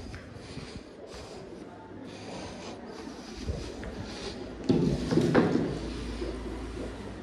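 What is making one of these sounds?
A wooden board knocks and scrapes as it is carried.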